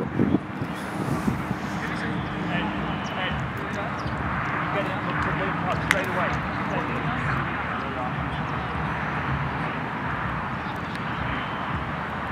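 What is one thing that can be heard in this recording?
A crowd of spectators murmurs in the distance, outdoors.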